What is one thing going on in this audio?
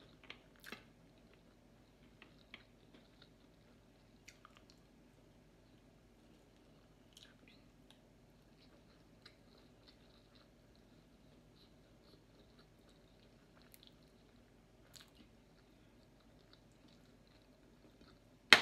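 Fingers rustle and squish through food on a plate.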